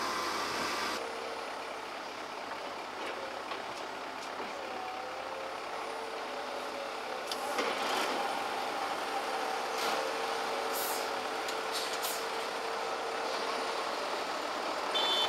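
A truck engine idles steadily.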